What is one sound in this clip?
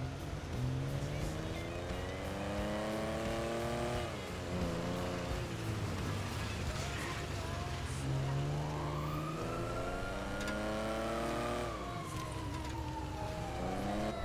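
A car engine revs up and down repeatedly as it accelerates.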